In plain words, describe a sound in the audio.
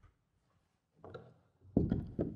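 A door shuts with a knock.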